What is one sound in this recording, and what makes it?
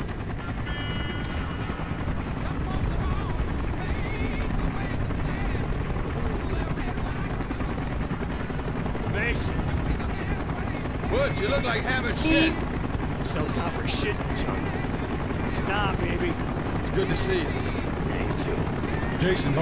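Helicopter rotors thud steadily overhead.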